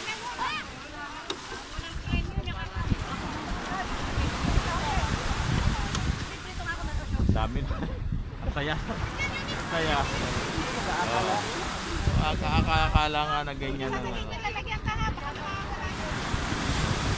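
Wind blows across outdoors.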